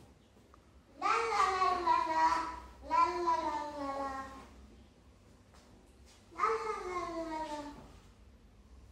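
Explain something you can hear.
A young girl speaks loudly in a high, sing-song voice.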